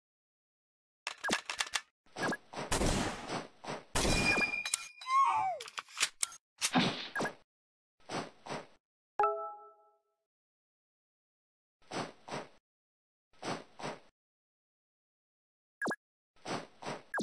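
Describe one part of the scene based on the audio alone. Short game sound effects click and blip now and then.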